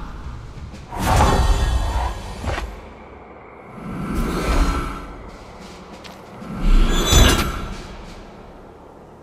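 Magical whooshing effects ring out in short swelling bursts.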